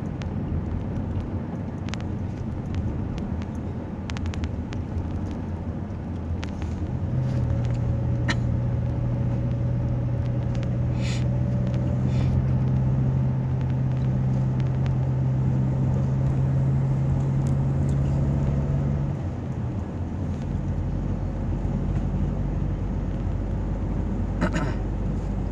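A car engine hums steadily from inside the car while it drives.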